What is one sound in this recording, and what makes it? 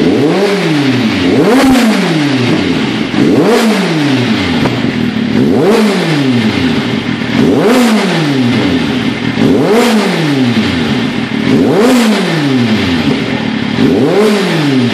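A motorcycle engine revs hard through its exhaust, again and again, roaring up and dropping back every couple of seconds.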